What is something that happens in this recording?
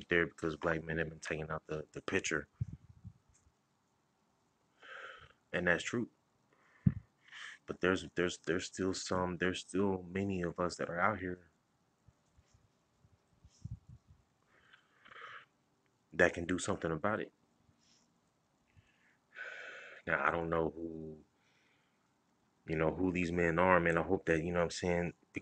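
A man talks calmly and close up, with pauses.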